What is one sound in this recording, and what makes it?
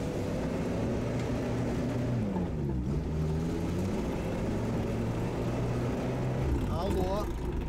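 A small vehicle engine drones and revs while driving over rough ground.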